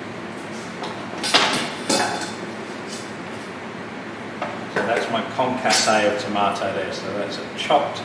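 A metal bowl clinks on a counter.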